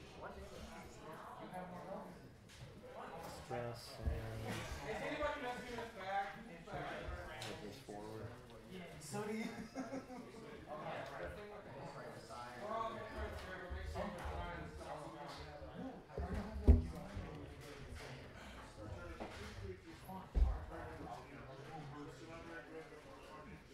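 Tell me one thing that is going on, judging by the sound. Plastic game pieces click and knock on a table.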